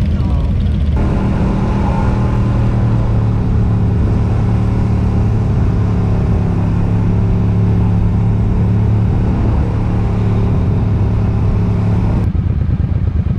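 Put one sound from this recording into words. A motorcycle engine drones steadily while riding.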